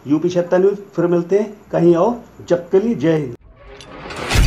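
A man speaks calmly and quickly close by.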